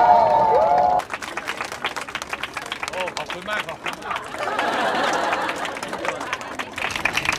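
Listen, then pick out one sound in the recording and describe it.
A large crowd claps and applauds loudly.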